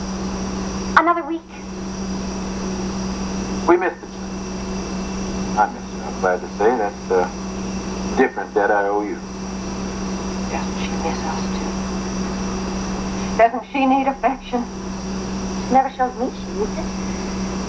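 A second woman speaks, heard through a television speaker.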